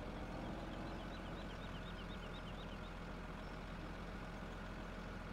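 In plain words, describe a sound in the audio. A wheel loader's diesel engine rumbles steadily at idle.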